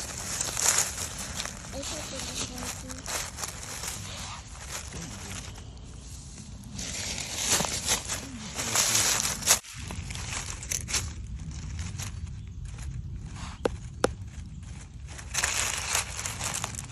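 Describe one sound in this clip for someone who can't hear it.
Dry leaves rustle and crunch as a hand rummages through them.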